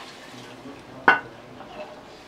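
A metal pot clinks sharply against another pot.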